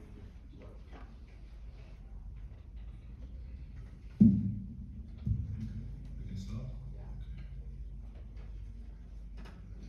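A low, steady drone hums from a stringed instrument.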